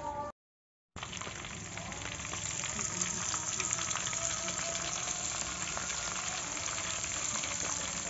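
Oil sizzles and bubbles steadily as food fries.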